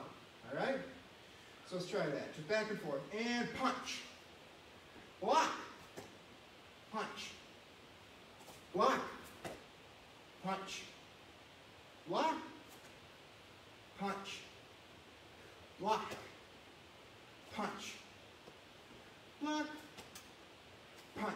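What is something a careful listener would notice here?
A young man shouts sharp bursts in an echoing room, again and again at a steady pace.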